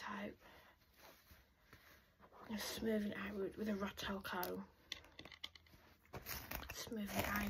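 Fingers rustle through hair close to a microphone.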